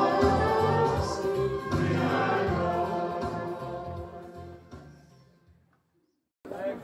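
A congregation sings together in a large echoing hall, then fades out.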